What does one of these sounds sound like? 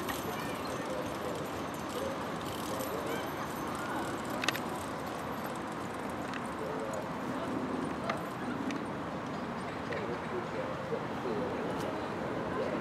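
Carriage wheels rattle and creak.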